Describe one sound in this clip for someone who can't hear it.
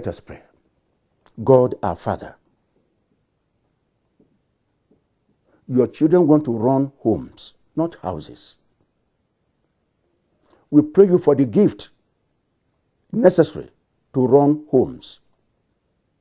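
A man speaks slowly and solemnly into a close microphone, with long pauses.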